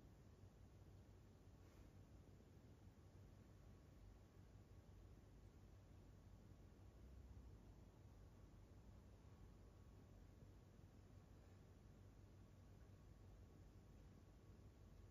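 A dog breathes slowly and softly while sleeping nearby.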